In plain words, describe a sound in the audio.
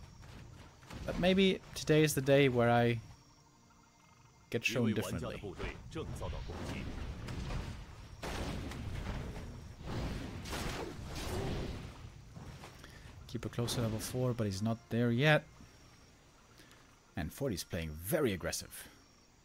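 A young man commentates with animation through a microphone.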